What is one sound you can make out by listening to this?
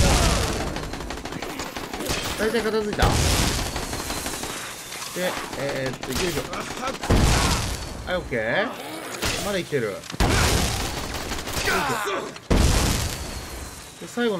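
Gunshots and blasts crack loudly, each followed by a crackling burst.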